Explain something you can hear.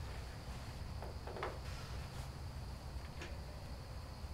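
Clothing rustles softly as a woman moves about.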